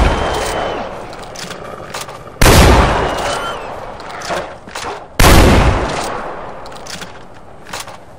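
Shotgun shells click as they are loaded.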